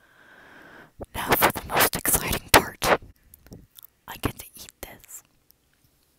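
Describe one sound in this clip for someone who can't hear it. A person chews and munches loudly and wetly up close.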